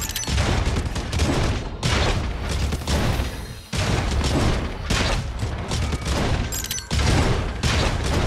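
Loud, driving electronic music with heavy beats plays.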